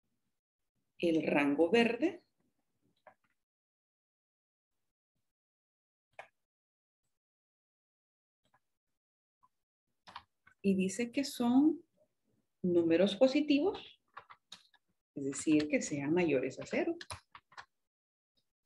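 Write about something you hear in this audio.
A woman speaks calmly and clearly into a microphone, in short phrases with pauses.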